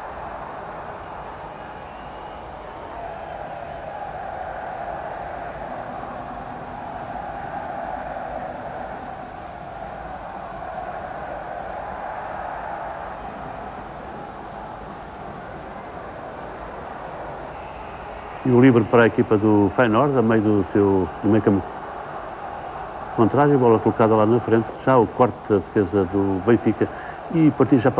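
A large stadium crowd murmurs and roars steadily in the distance.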